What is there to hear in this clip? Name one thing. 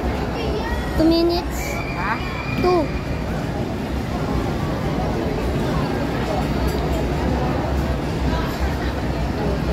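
Riders on a swinging fairground ride scream.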